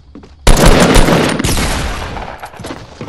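A gun fires a loud burst of shots.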